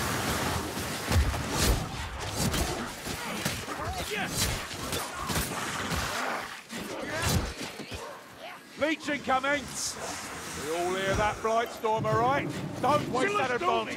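Blades slash and thud heavily into bodies.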